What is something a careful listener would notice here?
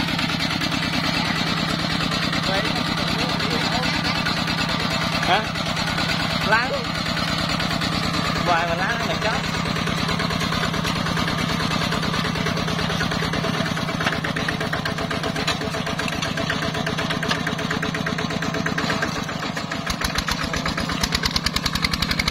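A small diesel engine chugs steadily close by.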